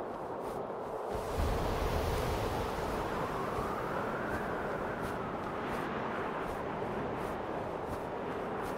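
Wind rushes steadily.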